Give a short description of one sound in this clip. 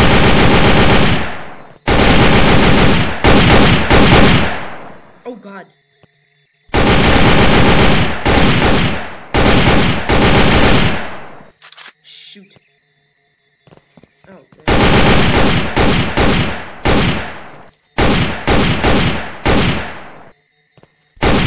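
Loud rifle shots fire in rapid bursts, echoing in a large hollow space.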